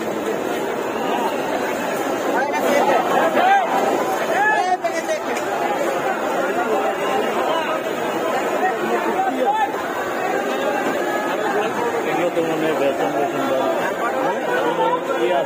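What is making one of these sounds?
Oil sizzles in a frying pan.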